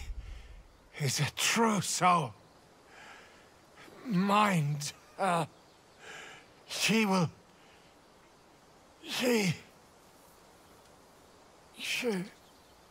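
A man groans and gasps in pain close by, in short strained bursts.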